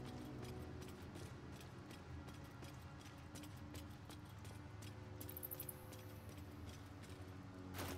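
Footsteps tread on stony ground.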